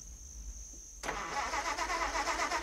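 A car engine starts and idles with a rough rattle.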